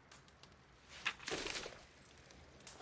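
Paper rustles as a map is folded away.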